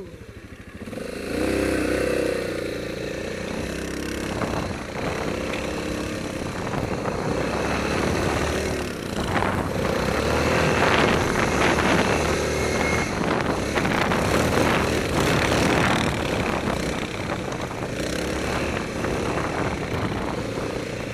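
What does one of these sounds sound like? A quad bike engine revs as it rides through snow.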